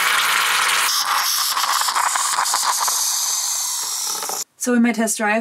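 Liquid pours into a metal mug.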